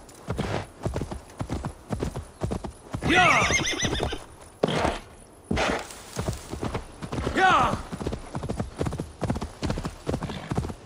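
A horse's hooves thud steadily as it trots over soft ground.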